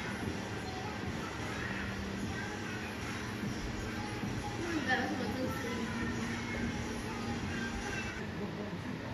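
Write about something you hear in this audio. A television plays pop music.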